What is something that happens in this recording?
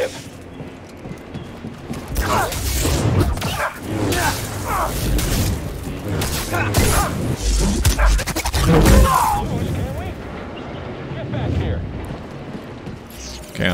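Lightsabers clash and hum in a fight.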